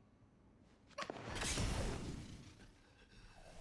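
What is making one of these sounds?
A man grunts in pain.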